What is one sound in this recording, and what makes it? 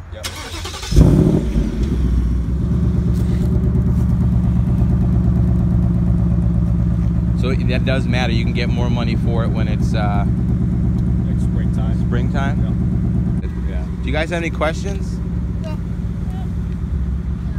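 A sports car engine starts with a roar and idles with a deep rumble.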